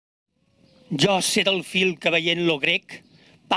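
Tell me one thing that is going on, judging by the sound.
A man speaks into a microphone, reading out calmly.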